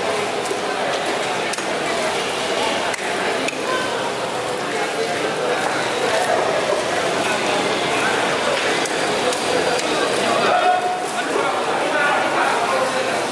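A knife slices wetly through fish flesh.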